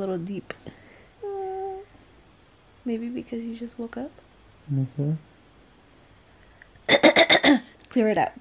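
A young woman talks casually close to the microphone.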